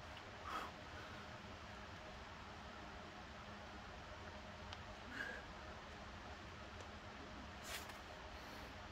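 A man exhales sharply with effort.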